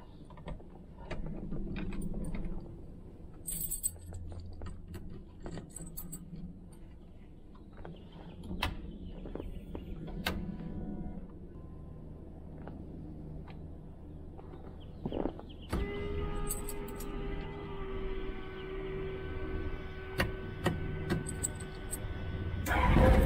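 Switches click in quick, sharp snaps.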